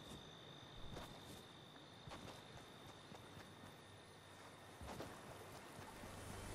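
Footsteps run quickly over grass.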